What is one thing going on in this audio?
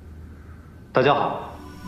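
A man greets the audience through loudspeakers.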